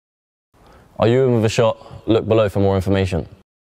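A second young man speaks with energy close to a microphone.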